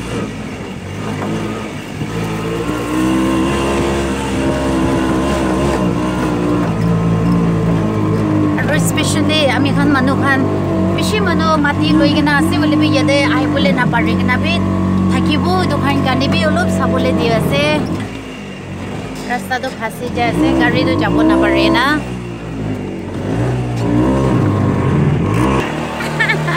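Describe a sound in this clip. A small three-wheeler engine rattles and hums steadily.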